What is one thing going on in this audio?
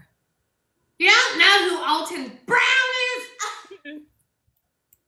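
A child laughs loudly.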